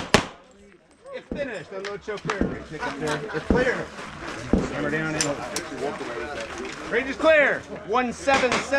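A crowd of men and women chat nearby.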